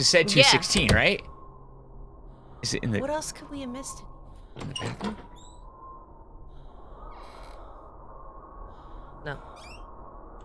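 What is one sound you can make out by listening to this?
A young woman talks and exclaims into a close microphone.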